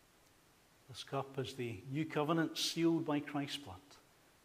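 A middle-aged man speaks calmly into a microphone in a reverberant hall.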